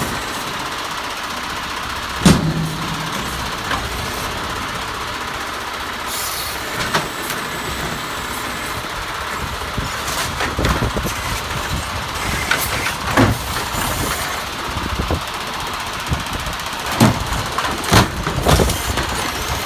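A garbage truck engine idles with a steady rumble.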